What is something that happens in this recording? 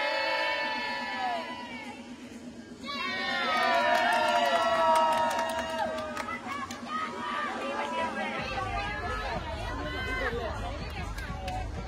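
A crowd of young women cheers and shouts excitedly.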